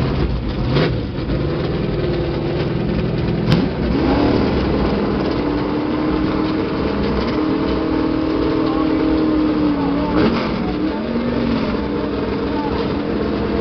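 Car engines idle and rumble loudly, revving now and then.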